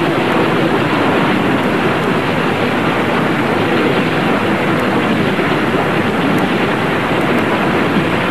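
Rocks crash and tumble down in a loud rumbling roar.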